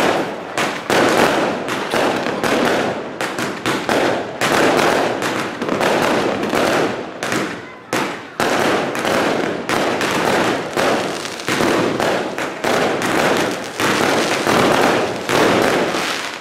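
Fountain fireworks hiss and fizz as they shoot sparks.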